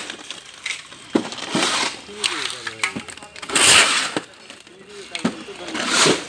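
A shovel scrapes through wet concrete on a concrete floor.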